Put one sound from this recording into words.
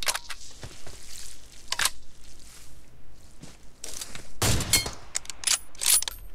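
Footsteps thud on dirt.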